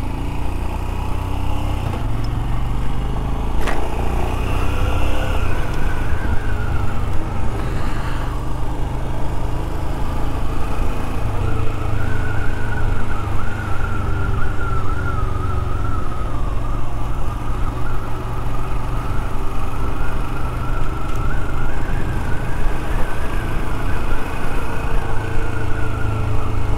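A motorcycle engine hums steadily as the bike rides along a street.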